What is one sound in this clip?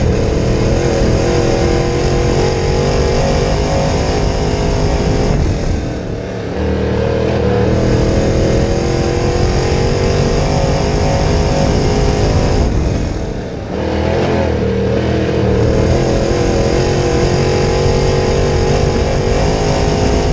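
A race car engine roars loudly at high revs, easing off and building again on each turn.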